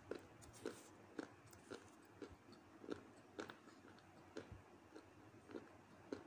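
Dry clay pieces crunch and crack in a hand.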